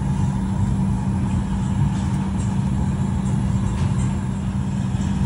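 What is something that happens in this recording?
A jet engine drones steadily in an aircraft cabin.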